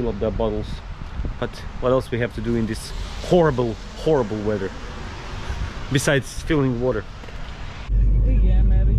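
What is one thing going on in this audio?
A man talks with animation close to a microphone, outdoors.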